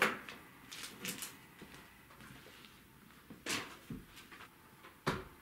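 Metal clanks and knocks as a panel is hooked onto a wall bracket.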